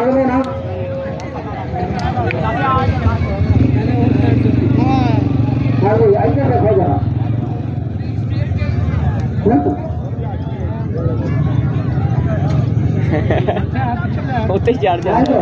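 A large outdoor crowd chatters and shouts.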